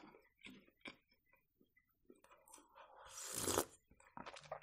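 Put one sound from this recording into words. A young woman sips a drink noisily.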